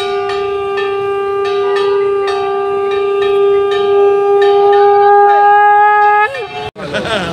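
A boy blows a conch shell in a long, steady, loud blast.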